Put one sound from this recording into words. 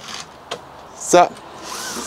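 A pleated blind slides along its track with a soft rustle.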